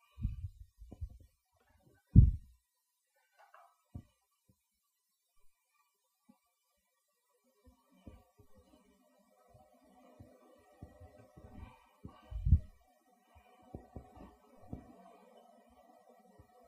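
A plastic scraper scrapes across a floured counter.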